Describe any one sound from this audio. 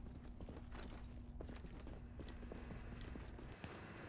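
Footsteps walk on a hard floor.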